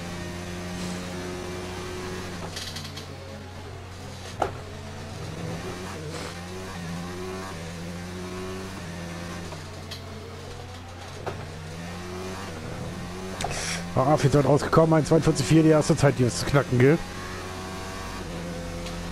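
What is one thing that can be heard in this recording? A Formula One racing car engine revs up and down through the gears.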